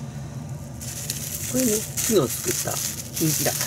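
Plastic wrap crinkles and rustles in hands close by.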